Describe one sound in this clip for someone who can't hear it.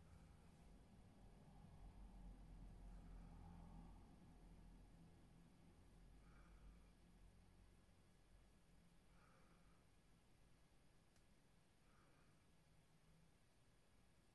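A makeup brush brushes softly against skin.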